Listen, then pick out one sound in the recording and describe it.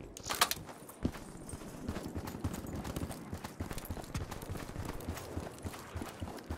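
Boots run across sandy ground.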